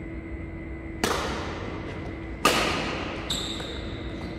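A shuttlecock is hit with sharp smacks of a racket in a large echoing hall.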